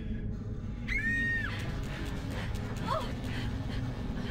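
Crawling creatures shriek and screech.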